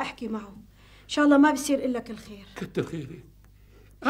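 An elderly woman speaks calmly, close by.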